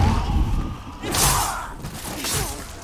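Swords clash and strike in a fight.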